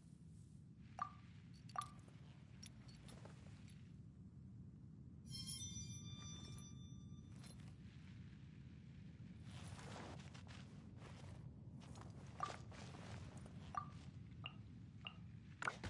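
Short soft chimes pop up now and then as chat messages arrive.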